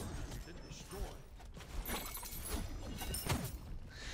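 Magical blasts whoosh and crackle in quick bursts.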